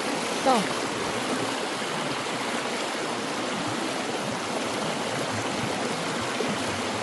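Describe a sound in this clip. A shallow stream rushes and splashes steadily over stones.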